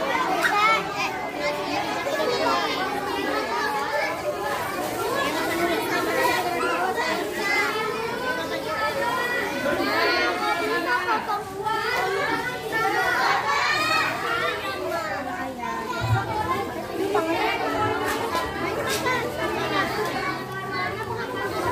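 Paper food wrappers rustle and crinkle.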